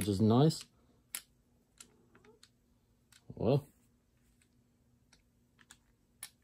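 A hard plastic part knocks and clicks as it is handled.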